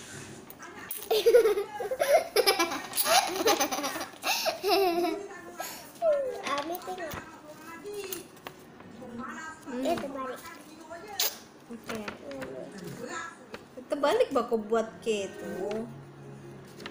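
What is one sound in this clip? A young girl talks and babbles close by.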